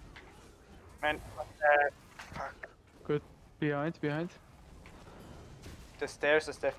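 Magic spells burst and ring out in short, sharp blasts.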